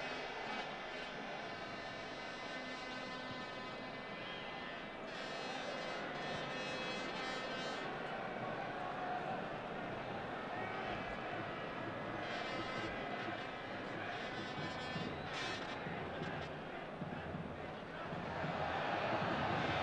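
A large stadium crowd murmurs steadily and swells into a roar near the end.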